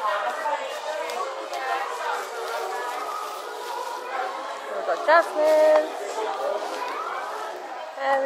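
Plastic bubble wrap crinkles under a hand.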